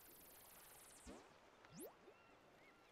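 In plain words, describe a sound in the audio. A whooshing game sound effect sweeps past.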